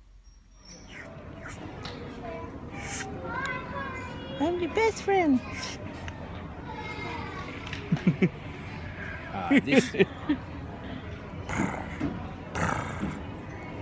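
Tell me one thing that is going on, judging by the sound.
A woman talks playfully to a baby in a high voice.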